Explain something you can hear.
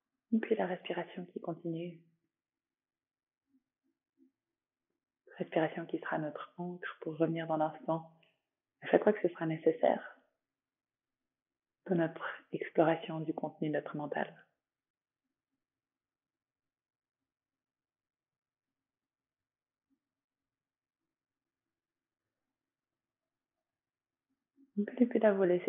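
A woman speaks calmly and softly, close to a microphone.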